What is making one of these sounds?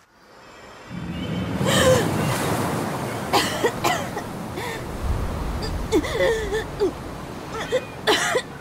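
A young woman gasps and breathes heavily close by.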